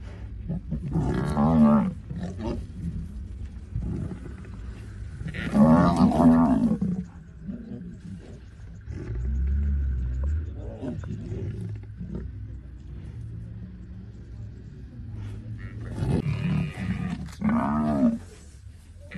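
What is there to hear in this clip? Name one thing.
A buffalo calf bleats loudly in distress.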